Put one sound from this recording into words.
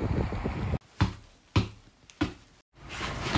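A football thumps off a foot several times in quick succession.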